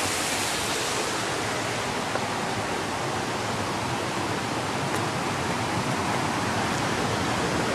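A shallow stream rushes and gurgles over stones.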